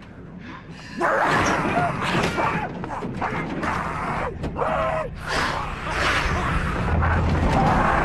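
A young woman cries out in alarm close by.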